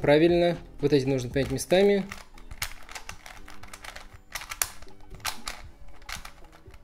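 A plastic puzzle cube clicks and rattles as it is twisted quickly.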